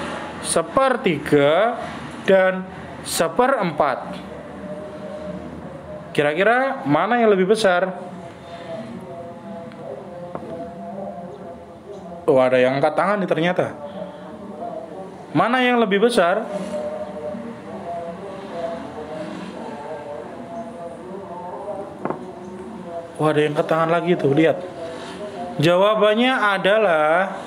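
A man narrates calmly through a microphone.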